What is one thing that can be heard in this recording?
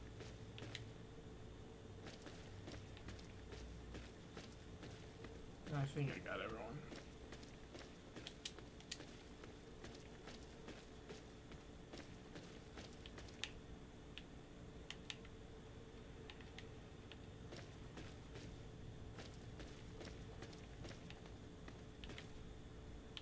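Footsteps crunch over rubble at a steady walking pace.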